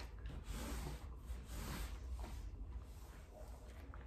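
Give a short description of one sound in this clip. A cloth wipes along a baseboard with a soft rubbing.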